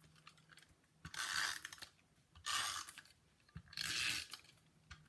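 A sponge dabs ink onto paper in quick rubbing bursts.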